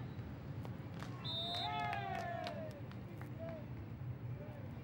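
Spectators cheer and applaud after a point.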